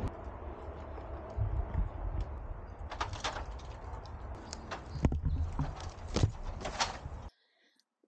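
Branches rustle and snap as a man climbs through brush.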